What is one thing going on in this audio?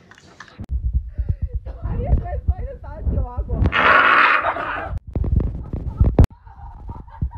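Young women laugh loudly close by.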